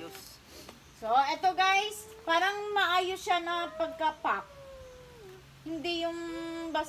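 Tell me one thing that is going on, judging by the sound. A young child talks loudly in a high voice.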